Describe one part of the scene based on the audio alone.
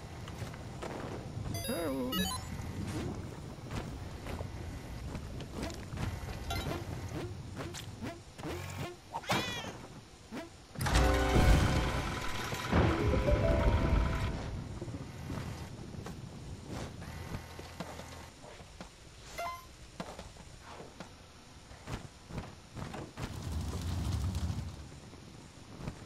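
Video game music plays throughout.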